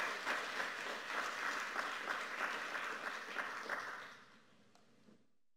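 An audience applauds in a large hall, then the clapping fades out.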